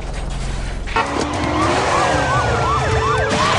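A heavy bus slams onto the road with a loud crash.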